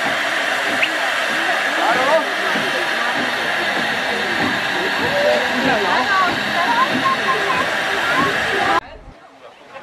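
Young children chatter and call out loudly close by.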